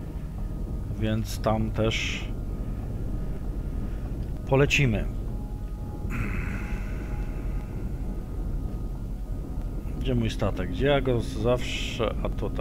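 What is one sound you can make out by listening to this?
A man speaks calmly into a headset microphone in short bursts.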